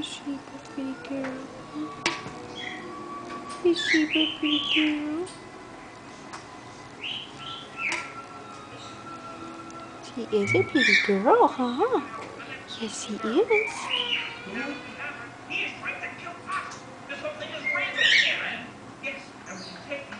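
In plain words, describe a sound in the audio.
A parrot chatters and squawks up close.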